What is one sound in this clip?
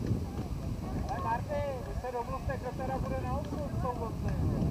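Young men shout to each other far off across an open field.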